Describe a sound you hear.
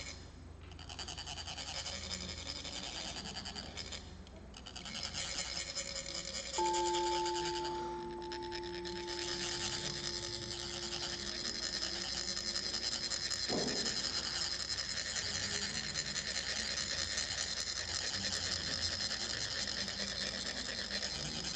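Metal funnels rasp steadily as sand is scraped out in fine streams.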